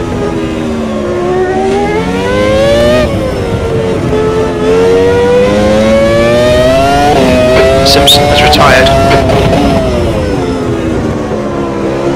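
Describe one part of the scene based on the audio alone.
A racing car engine roars, revving up and dropping in pitch as it shifts gears.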